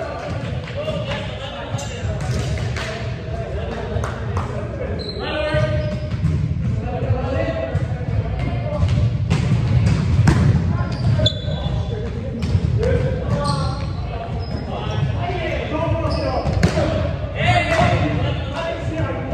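Sneakers squeak on a wooden floor.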